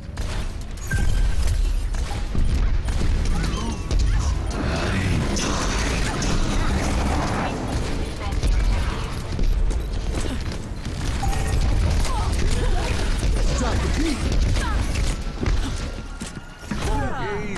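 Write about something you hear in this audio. A game rifle fires in rapid bursts.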